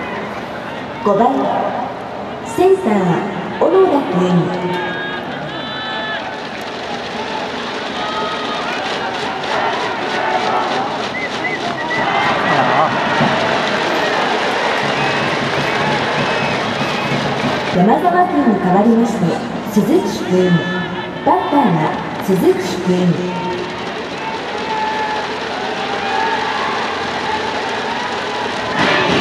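A large crowd cheers and chants throughout a stadium.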